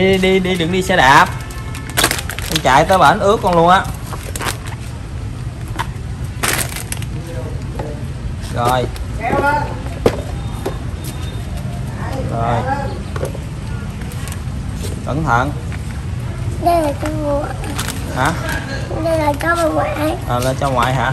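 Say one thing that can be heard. A toddler babbles and chatters nearby.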